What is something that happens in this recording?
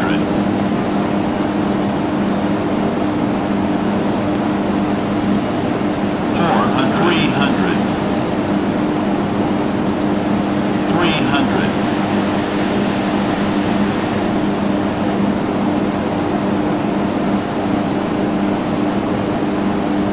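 A propeller engine drones steadily throughout.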